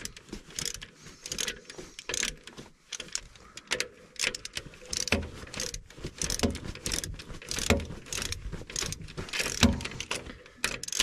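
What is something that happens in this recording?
A ratchet wrench clicks rapidly as it turns a bolt.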